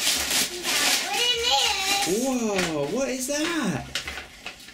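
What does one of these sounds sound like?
A young child speaks and squeals excitedly nearby.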